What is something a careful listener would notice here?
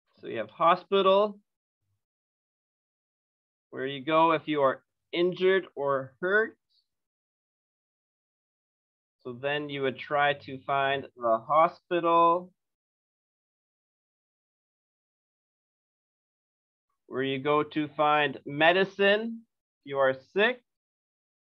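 A man speaks calmly in pauses over an online call.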